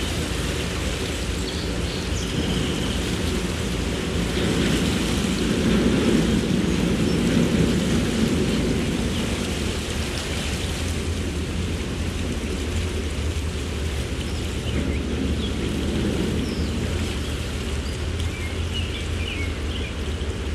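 Wind blows past outdoors.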